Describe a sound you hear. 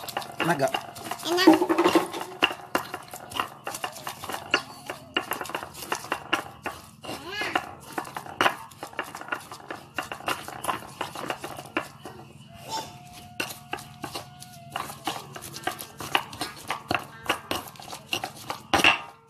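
A stone pestle grinds and knocks against a stone mortar in quick, repeated strokes.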